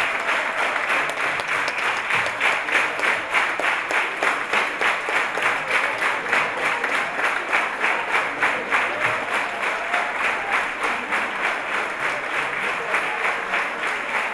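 An audience claps in steady rhythm in a large hall.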